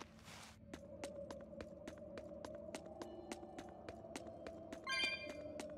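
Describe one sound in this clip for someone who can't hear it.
Footsteps tap quickly on hard stone ground.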